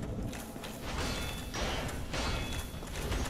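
Swords clash with sharp metallic rings.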